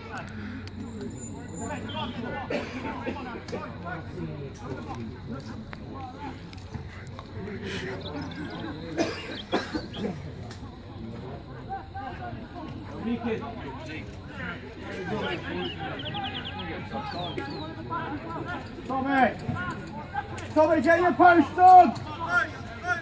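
Players shout to each other, distant outdoors.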